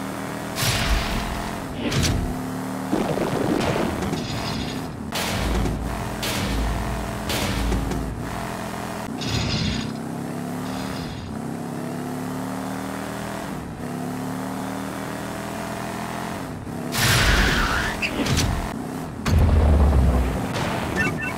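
A video game race car engine whines and revs.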